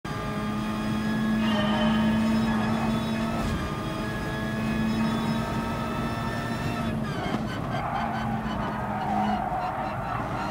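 A racing car engine roars at high revs, its pitch shifting with gear changes.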